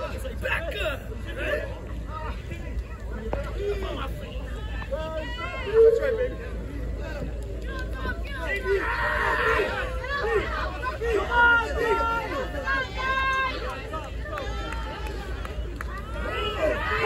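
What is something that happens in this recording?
An outdoor crowd chatters and shouts.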